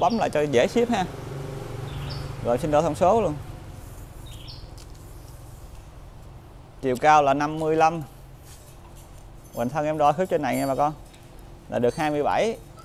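A young man talks calmly close by, in short bursts.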